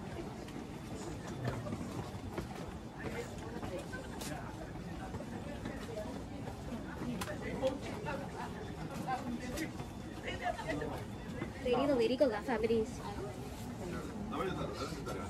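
Footsteps shuffle on a stone path.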